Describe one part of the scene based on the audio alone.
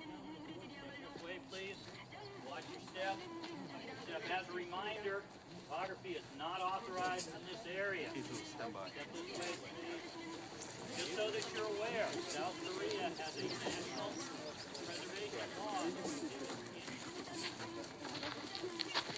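A group of men and women chat as they walk.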